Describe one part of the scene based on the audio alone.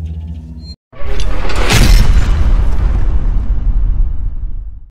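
A loud whooshing burst swells and slowly fades.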